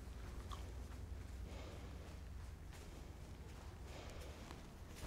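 A horse's hooves thud softly on sand.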